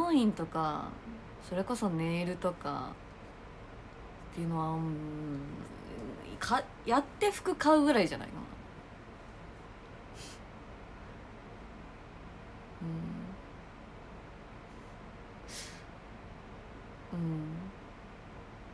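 A young woman speaks softly and casually, close up.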